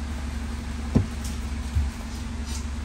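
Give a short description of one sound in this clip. A car's boot floor panel knocks as it is lifted.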